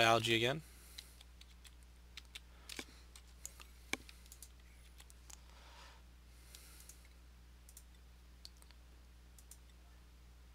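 Soft game interface clicks tick now and then.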